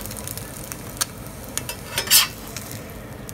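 A metal spatula scrapes against the pan.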